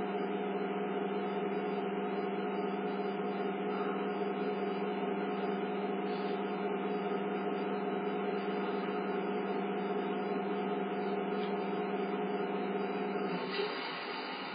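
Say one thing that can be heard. A stopped train's motor hums steadily through a television speaker, then cuts off.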